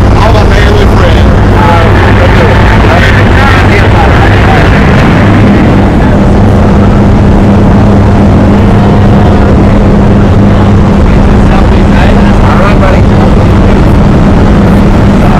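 A small plane's engine drones loudly and steadily.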